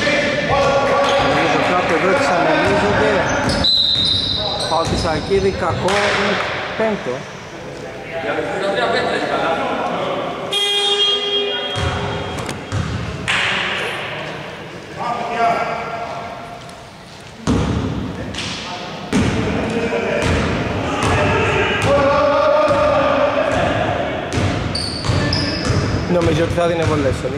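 Men shout and call out in a large echoing hall.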